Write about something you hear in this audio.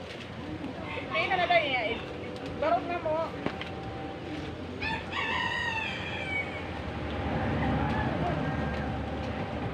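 Children and young women laugh and shout playfully nearby, outdoors.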